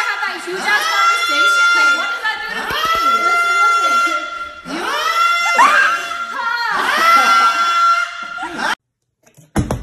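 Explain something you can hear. A young man sings loudly and with feeling.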